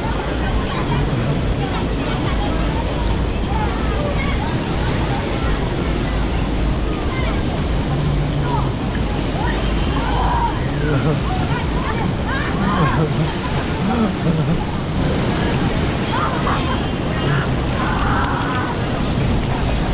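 Water from a fountain splashes and pours steadily.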